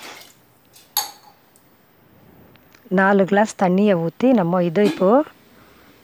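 Water pours into a metal pot.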